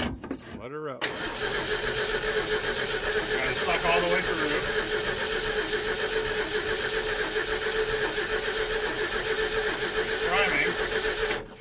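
An old engine idles steadily.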